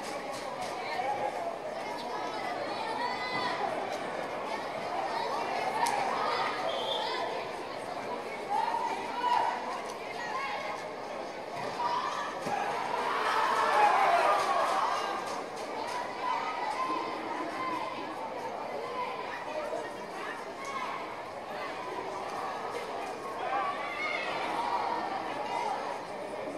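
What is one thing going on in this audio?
A crowd chatters and calls out throughout a large echoing hall.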